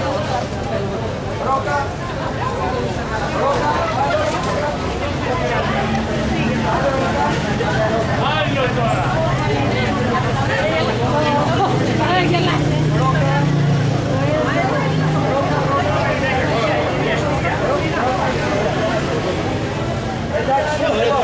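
A crowd of men and women chatters loudly all around, outdoors.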